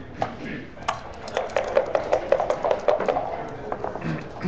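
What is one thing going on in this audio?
Dice rattle in a cup.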